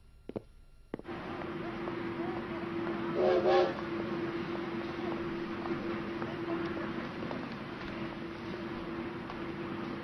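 A train idles with a low, steady hum.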